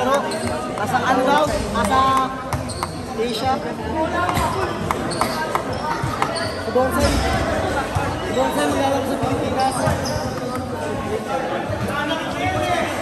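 Many men and boys talk and call out nearby in a large open hall.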